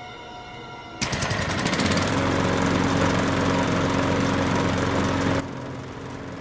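A generator engine starts and hums steadily.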